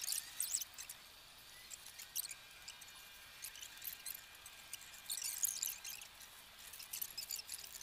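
Leaves rustle as a plant is pulled and handled nearby.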